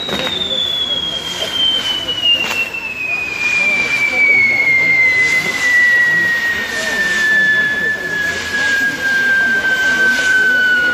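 Fireworks hiss and roar steadily as they spin.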